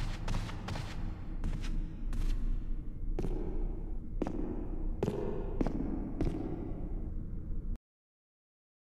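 Footsteps run and echo across a hard floor in a large hall.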